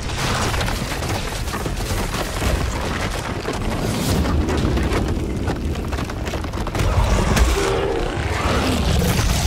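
Heavy stomping footsteps thud steadily.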